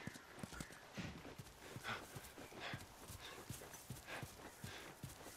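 Footsteps crunch steadily through grass.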